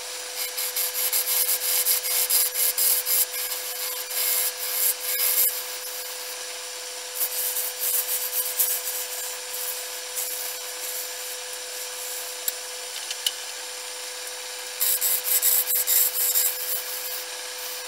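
A gouge scrapes and hisses against spinning wood in bursts.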